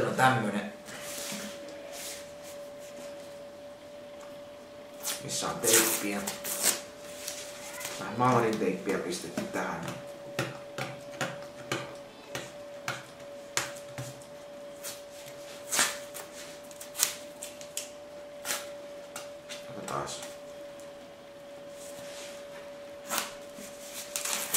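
Paper crackles as fingers tap and squeeze it.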